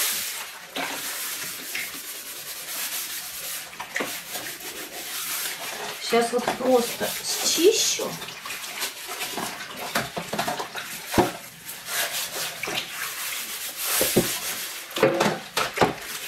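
Water sloshes and splashes in a tub.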